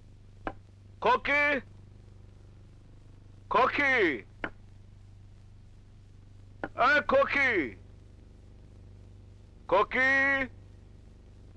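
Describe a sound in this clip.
A man calls out loudly in short bursts.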